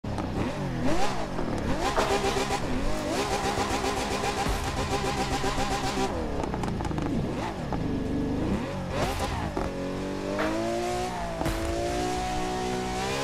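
A sports car engine revs loudly, its pitch rising and falling.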